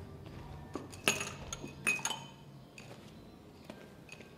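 Glass jars clink as brushes are handled.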